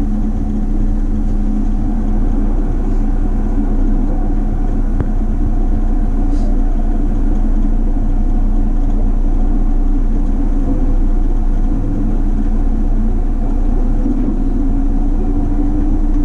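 A train rumbles and hums steadily from inside a carriage as it moves.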